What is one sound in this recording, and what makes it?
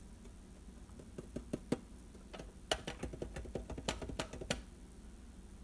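Fingers tap and scrape on a metal tin.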